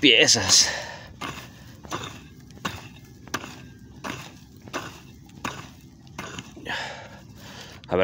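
A pick strikes hard, dry soil again and again.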